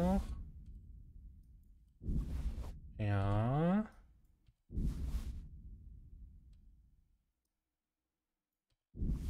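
Short game menu sounds whoosh and ring out one after another, each fading away.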